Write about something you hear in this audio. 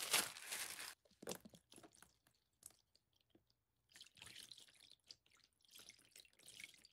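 Liquid soap pours and splashes into a plastic tub.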